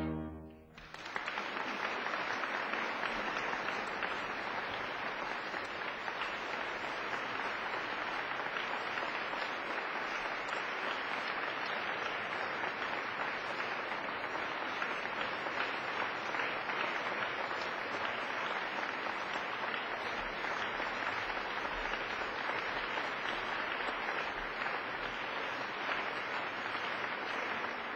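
An audience applauds loudly and steadily in an echoing hall.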